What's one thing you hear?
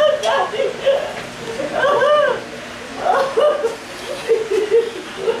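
A woman sings in a mournful voice nearby.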